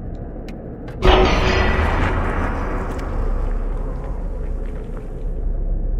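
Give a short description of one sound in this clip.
A heavy door grinds open with a sudden deep rumble that slowly fades.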